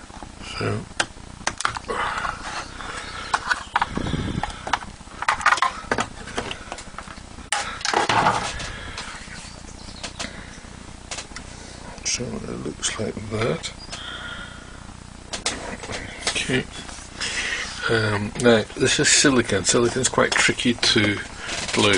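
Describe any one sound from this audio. Small plastic parts click and knock against a hard surface.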